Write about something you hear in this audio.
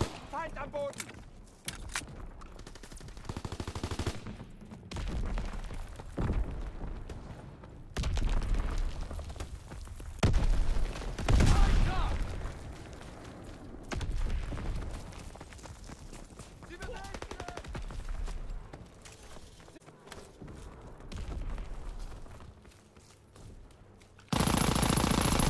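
Footsteps thud quickly over rough ground.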